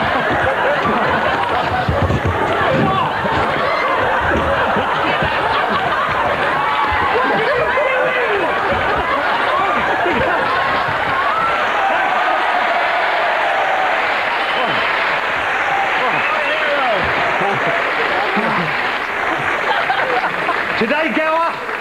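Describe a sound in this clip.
A studio audience laughs and cheers loudly.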